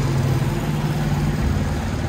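A motorcycle engine rumbles past.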